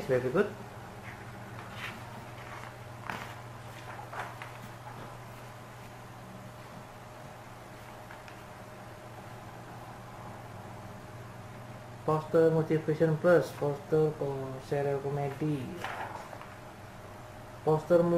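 Magazine pages rustle as they are turned.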